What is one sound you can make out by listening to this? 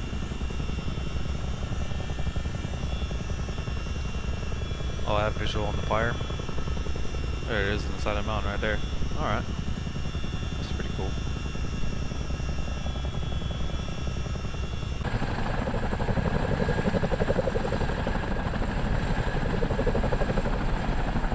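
A helicopter's rotor thumps and its engine drones steadily.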